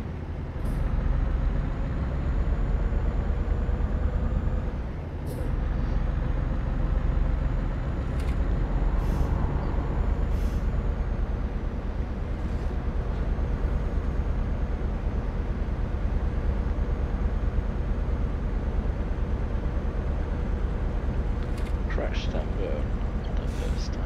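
A diesel truck engine drones inside the cab while cruising on a highway.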